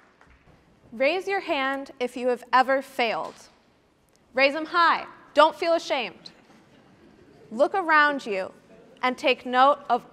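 A young woman speaks with animation through a microphone in a large hall.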